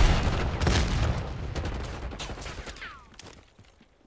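A grenade explodes with a deep, booming rumble that slowly dies away.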